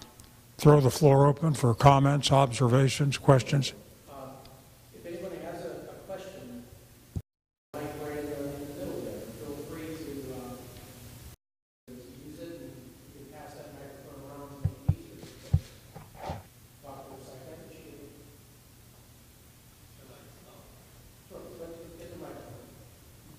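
An elderly man speaks steadily through a microphone.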